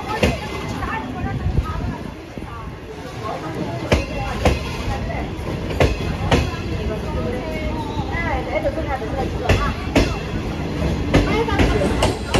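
A crowd of adults chatters nearby outdoors.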